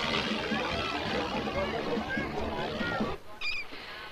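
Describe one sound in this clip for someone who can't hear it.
A crowd of people chatters and shouts outdoors.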